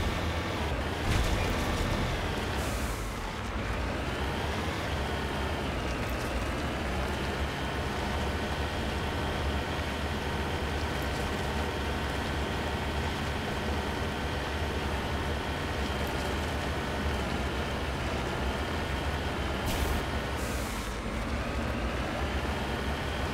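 Heavy tyres rumble over rough ground.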